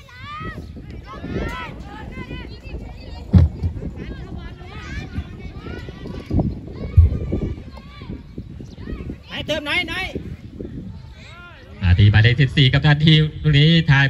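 Young players shout to each other in the distance across an open field.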